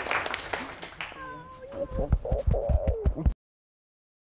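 A woman speaks to an audience in a large echoing room.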